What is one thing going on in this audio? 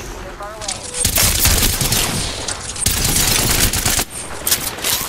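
A rifle fires loud rapid shots.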